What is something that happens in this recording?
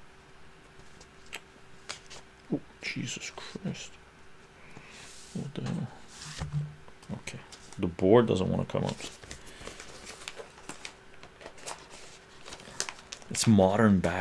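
Small objects click and tap as an older man handles them.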